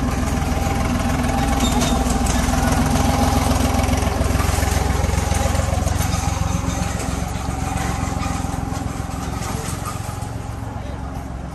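A street sweeper's engine hums loudly close by.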